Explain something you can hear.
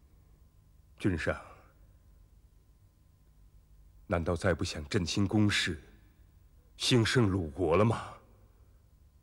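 A middle-aged man speaks slowly and with feeling, close by.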